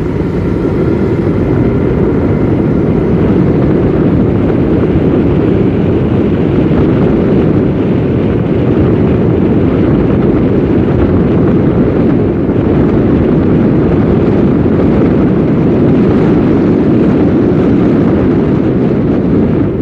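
Bicycle tyres roll steadily over asphalt.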